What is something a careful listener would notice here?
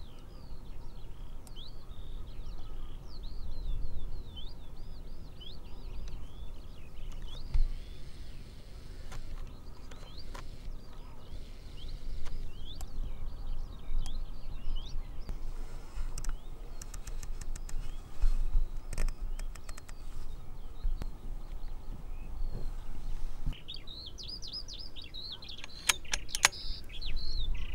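Birds chirp and whistle nearby.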